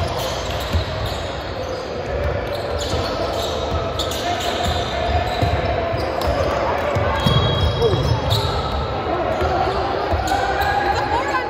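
A basketball bounces on a hard court in a large echoing gym.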